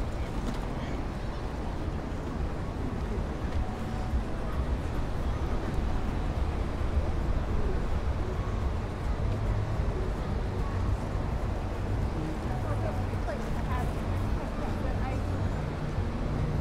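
Steady low traffic rumble and street noise fill the air outdoors.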